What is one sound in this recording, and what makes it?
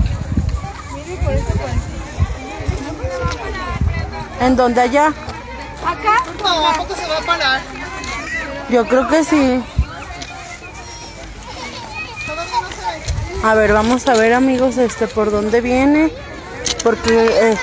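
Young women talk excitedly close by, outdoors.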